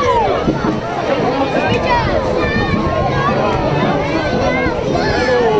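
A crowd of children and adults sing and cheer loudly outdoors.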